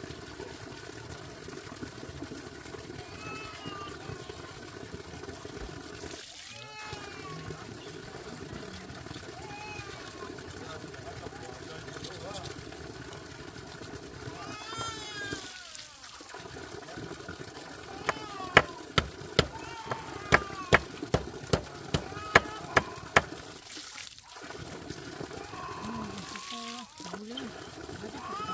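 A woman scrubs and rinses things in the water.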